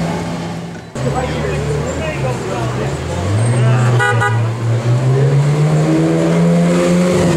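A Ferrari 360 V8 engine revs as the car pulls away.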